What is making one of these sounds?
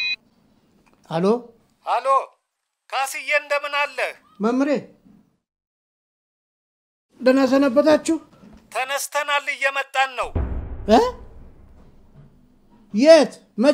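A middle-aged man talks on a phone with animation, close by.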